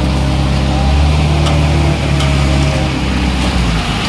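A shovel scrapes through wet concrete.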